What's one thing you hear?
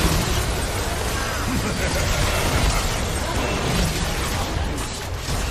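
Game battle effects clash and burst loudly.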